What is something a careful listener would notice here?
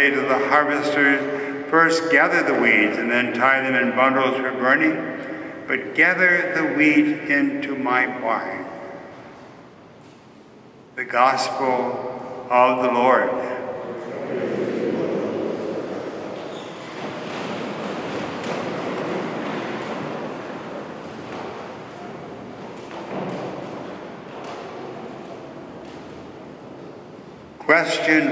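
A man chants through a microphone, echoing in a large hall.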